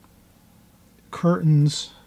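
A paintbrush brushes softly across paper.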